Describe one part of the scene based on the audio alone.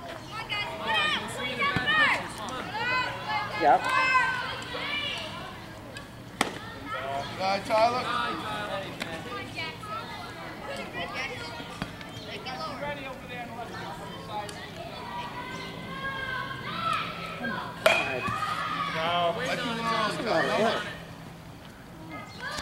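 Children shout and cheer outdoors.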